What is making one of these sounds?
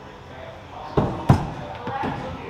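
An axe thuds hard into a wooden target.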